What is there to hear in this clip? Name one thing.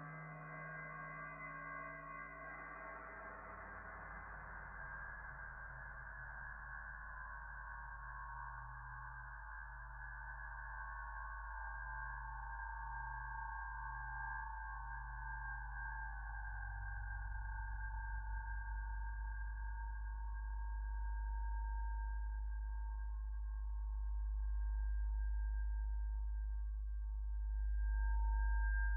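A modular synthesizer plays a droning, slowly shifting electronic tone.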